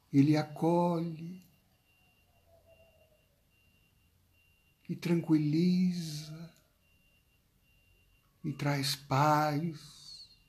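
A middle-aged man speaks slowly and calmly, close to the microphone, with long pauses.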